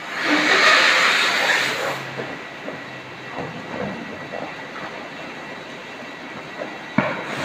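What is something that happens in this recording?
Water splashes gently in a tank.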